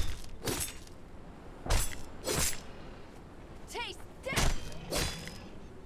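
Footsteps crunch heavily on sand.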